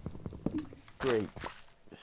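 Blocks crunch as they are broken.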